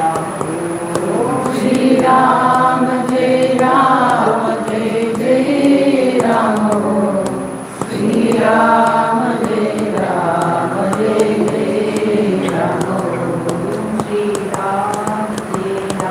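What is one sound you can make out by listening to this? An elderly man chants in a slow, drawn-out voice close by.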